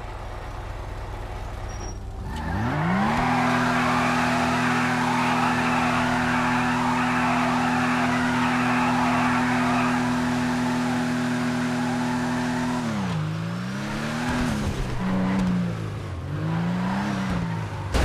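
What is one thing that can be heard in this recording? A car engine idles and revs hard, shifting up and down through the gears.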